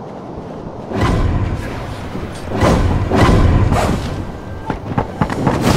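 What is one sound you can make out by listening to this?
Blades clash and strike in quick bursts.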